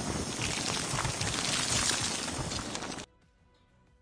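A frost grenade bursts with an icy hiss.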